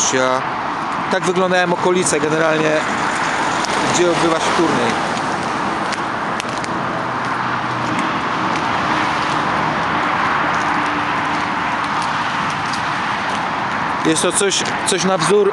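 Wind blows across an open outdoor space.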